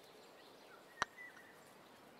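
A putter taps a golf ball once, sharply.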